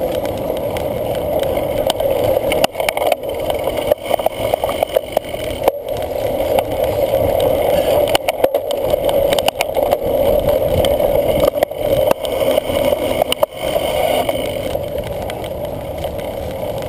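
Wind rushes past a riding cyclist.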